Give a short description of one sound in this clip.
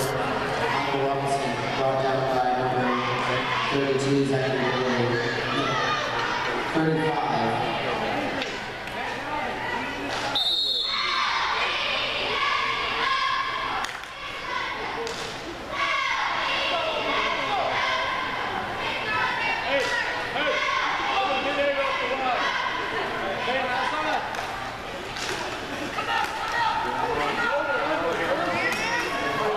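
A crowd of spectators chatters and calls out nearby in a large echoing hall.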